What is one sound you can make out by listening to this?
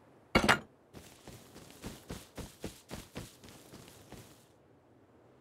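Footsteps crunch quickly over dirt.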